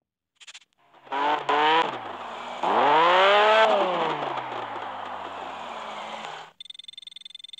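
A sports car engine roars and revs up, then winds down.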